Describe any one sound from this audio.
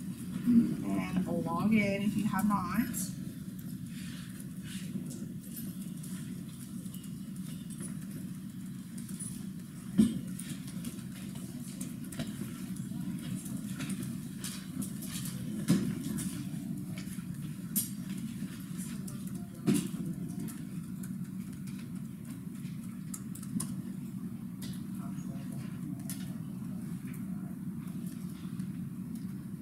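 Keys click softly on a laptop keyboard.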